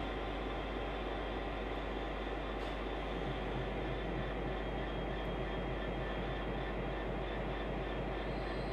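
A train hums and rumbles as it pulls away along the track.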